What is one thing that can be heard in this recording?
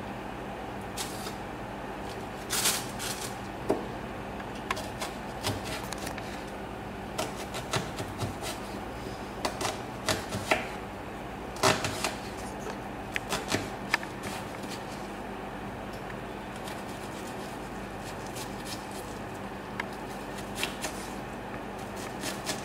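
A knife chops on a wooden cutting board in irregular knocks.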